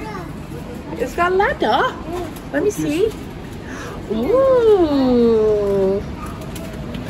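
A young child babbles and squeals excitedly nearby.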